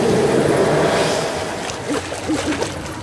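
Water splashes hard against a small rowboat.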